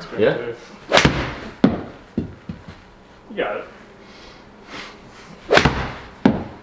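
A golf club sharply strikes a ball.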